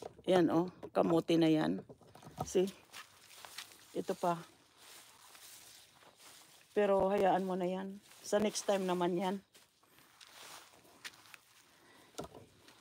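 An elderly woman speaks calmly close by, in short bursts with pauses.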